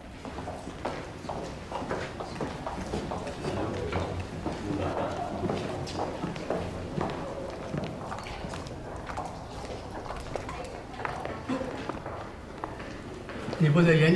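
Footsteps echo along a hallway.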